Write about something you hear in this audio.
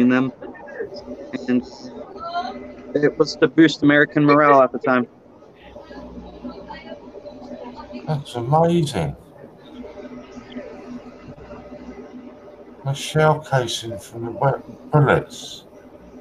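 A middle-aged man talks casually over an online call.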